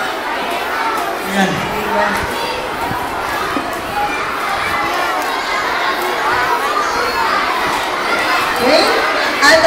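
A boy speaks into a microphone over a loudspeaker, reciting.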